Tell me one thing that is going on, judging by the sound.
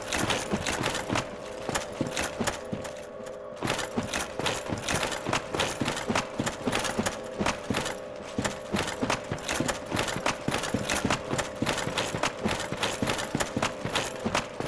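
Armored footsteps crunch quickly over gravel and rock.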